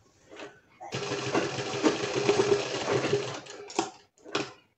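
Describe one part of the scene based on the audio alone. A sewing machine whirs as it stitches.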